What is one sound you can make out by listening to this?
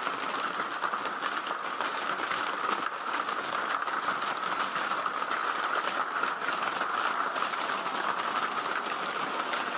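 Rain drums on a plastic roof overhead.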